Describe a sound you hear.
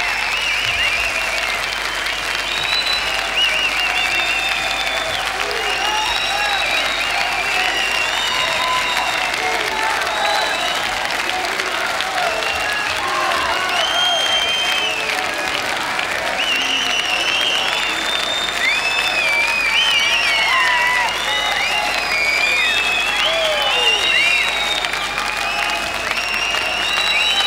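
A large crowd cheers and screams loudly in a big hall.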